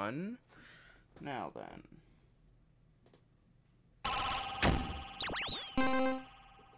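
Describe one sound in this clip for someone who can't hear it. Electronic synth sounds with sweeping, bending tones play through speakers.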